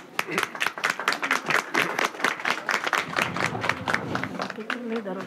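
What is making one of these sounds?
A small crowd claps.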